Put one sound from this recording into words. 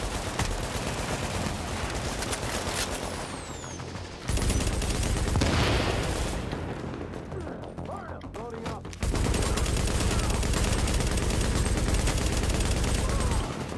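Rifles fire in rapid bursts of gunshots.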